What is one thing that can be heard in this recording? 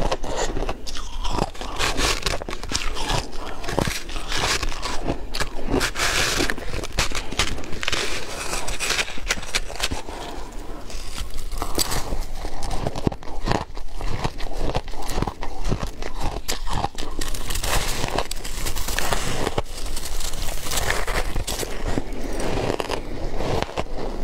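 A young woman bites and chews crunchy food close to a microphone.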